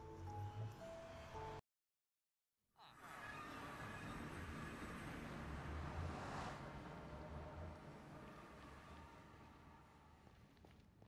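A magical portal hums and whooshes loudly, then fades.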